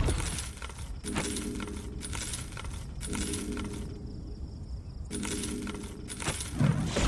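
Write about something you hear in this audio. Magic spell effects crackle and whoosh in quick, repeated bursts.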